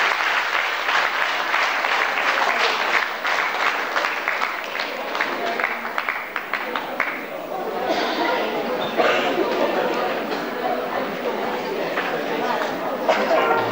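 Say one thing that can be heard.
Children's feet tap and stamp on a wooden floor in a large echoing hall.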